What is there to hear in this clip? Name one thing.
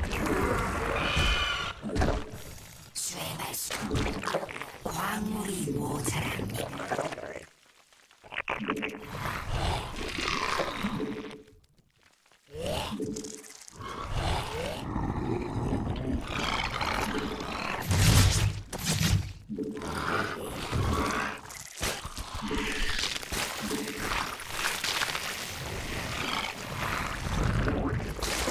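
Game battle sounds crackle and burst.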